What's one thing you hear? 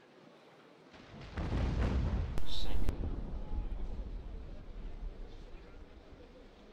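A cannon booms and rumbles as it fades.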